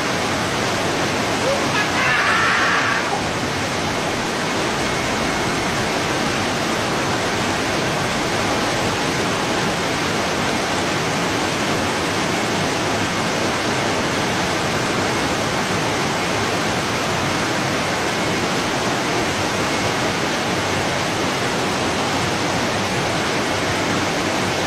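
Water rushes and churns through a weir.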